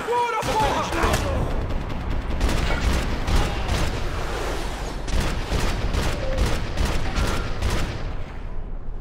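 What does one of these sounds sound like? Gunshots crack in quick bursts.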